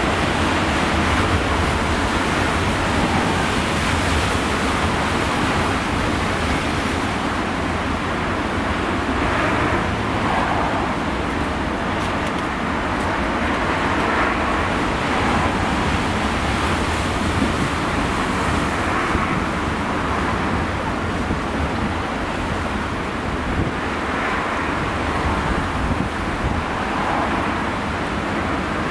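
Rough waves crash and roar against rocks, with surges swelling and breaking again and again.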